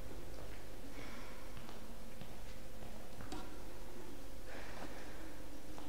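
Footsteps tap and squeak on a hard floor.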